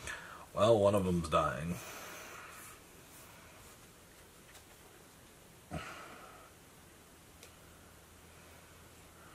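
Playing cards rustle softly as they are handled.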